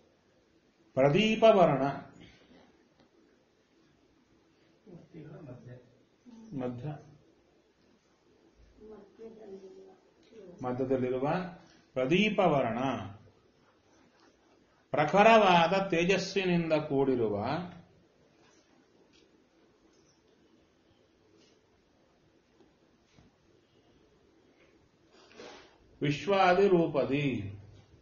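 A middle-aged man speaks calmly and deliberately close by, in short phrases with pauses.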